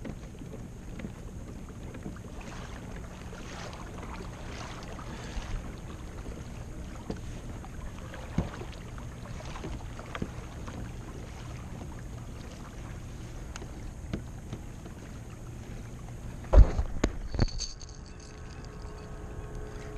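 Water splashes and laps softly against a kayak hull.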